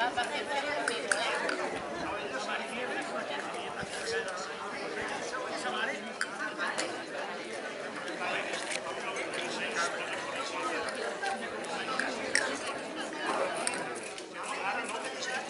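A crowd of men and women chatters outdoors at a distance.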